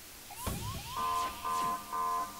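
An electronic warning alarm beeps repeatedly.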